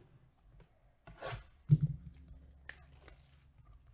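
Plastic shrink wrap crinkles and rustles under fingers.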